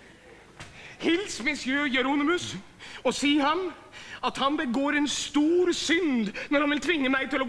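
A middle-aged man sings loudly and with feeling.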